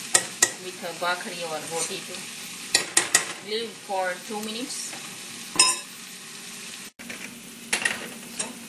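A metal spoon clinks against a pan and a bowl.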